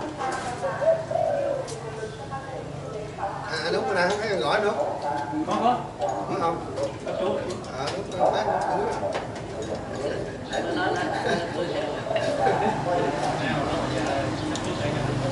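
Dishes and cutlery clink.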